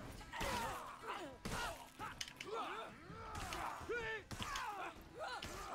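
Metal swords clash and clang in a fight.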